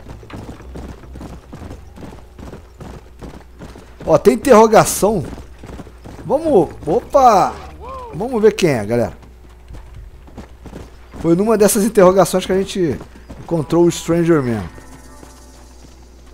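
A horse gallops with quick, steady hoof beats on a dirt path.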